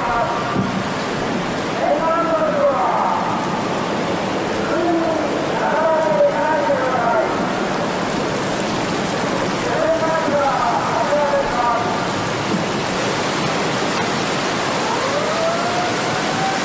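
Floodwater surges and roars through a street.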